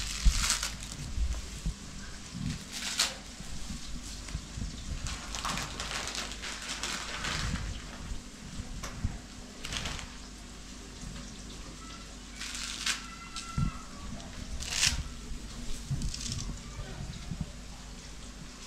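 Dry noodles crackle and rustle as hands break them.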